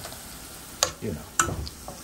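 Oil sizzles in a frying pan.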